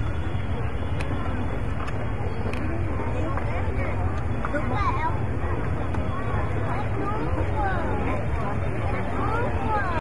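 A crowd murmurs at a distance outdoors.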